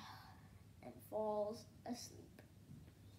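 A young boy speaks close by, reading aloud.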